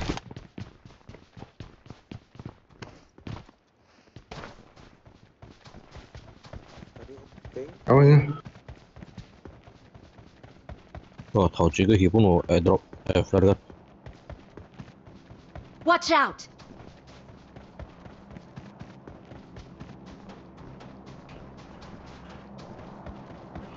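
Footsteps run quickly over grass and snow.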